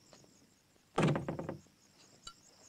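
A door bangs shut.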